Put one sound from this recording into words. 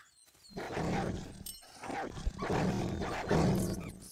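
Wild animals growl and snarl as they fight.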